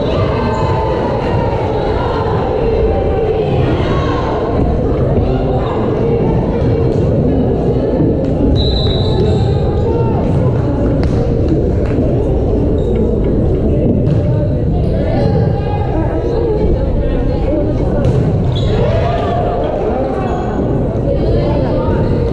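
A crowd chatters and cheers throughout a large echoing gym.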